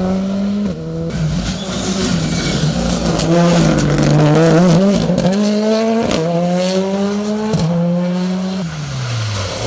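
A second rally car engine revs and pops through a tight corner.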